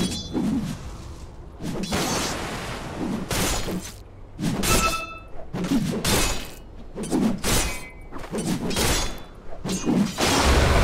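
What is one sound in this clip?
Weapons clang in a fantasy battle.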